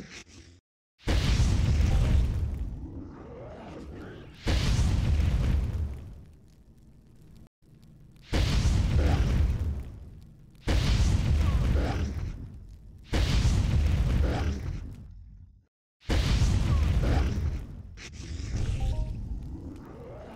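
Loud blasts boom and rumble again and again.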